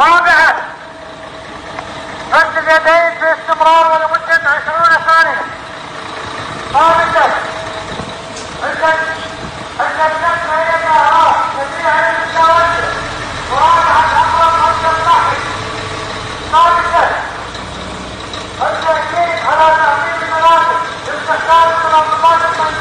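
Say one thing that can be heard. A fire truck's siren blares in short, repeated bursts close by.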